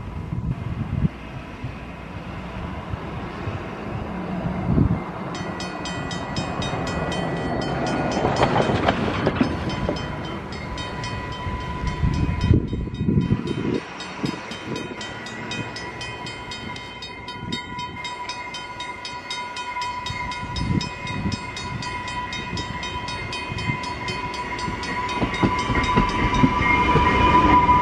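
A train approaches from a distance and rumbles past on the rails.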